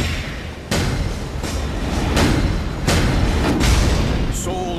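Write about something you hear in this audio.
Swords clash with sharp metallic strikes.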